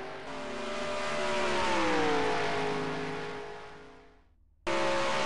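A V8 stock car engine roars at full throttle as it passes by.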